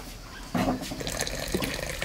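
Hot water pours into a cup.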